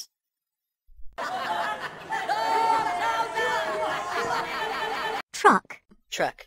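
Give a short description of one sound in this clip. A group of men shout and laugh excitedly together.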